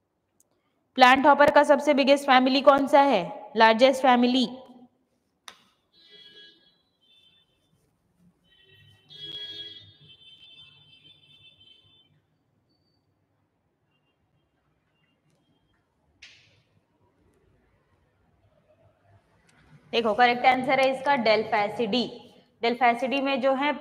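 A young woman speaks clearly into a close microphone, explaining in a teaching tone.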